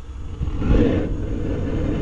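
A gas burner roars softly.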